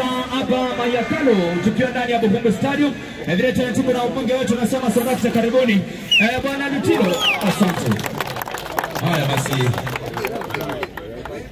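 A group of young men sing and chant loudly together outdoors.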